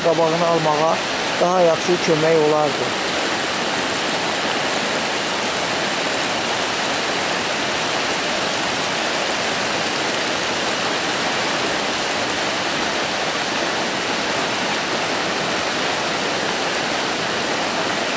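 Muddy floodwater rushes steadily in a rough roar.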